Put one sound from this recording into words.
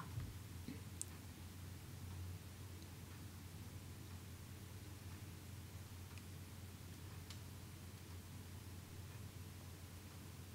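Mahjong tiles click softly as they are placed on a table.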